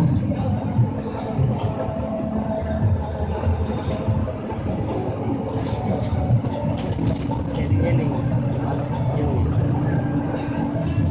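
A bus engine rumbles steadily as the bus drives along a road.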